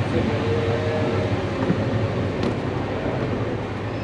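Footsteps thud on metal stairs.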